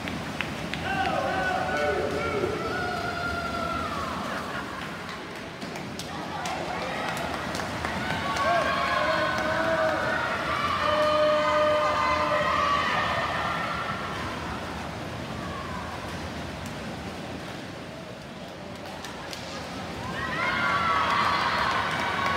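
Young people nearby shout and cheer loudly.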